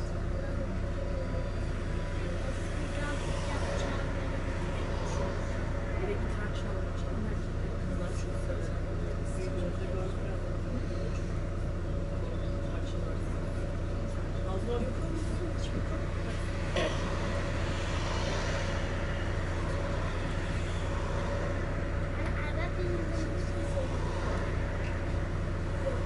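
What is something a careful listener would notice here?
Cars pass by close on the road.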